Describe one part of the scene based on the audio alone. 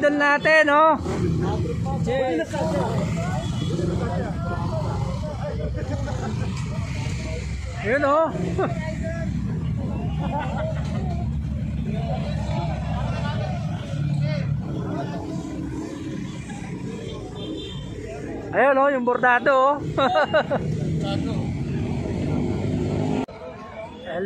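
Motorcycle engines idle with a low rumble.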